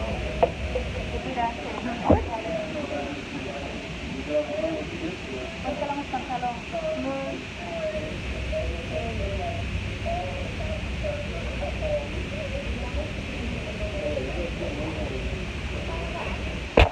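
A young boy talks close by.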